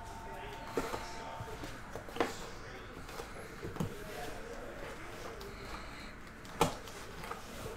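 Fingers tap and click against a plastic card case.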